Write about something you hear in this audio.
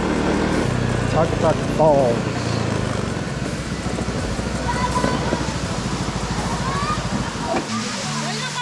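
A scooter engine hums steadily close by.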